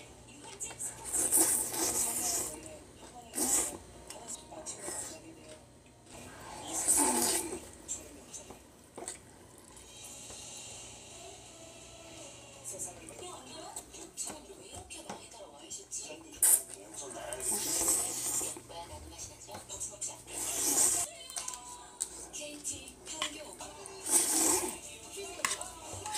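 A young woman slurps noodles up.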